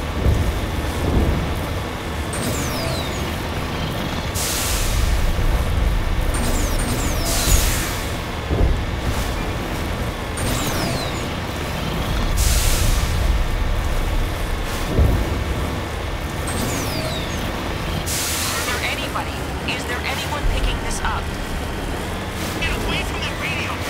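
A vehicle engine rumbles steadily as it drives.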